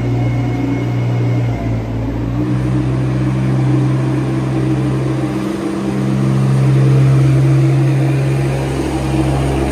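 A scraper blade scrapes wet manure along a concrete floor.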